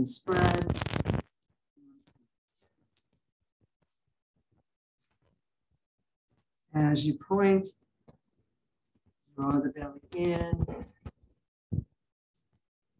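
An elderly woman speaks calmly into a microphone, heard as if over an online call, in short phrases with long pauses.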